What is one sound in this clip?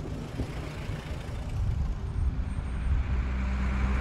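A bus drives by.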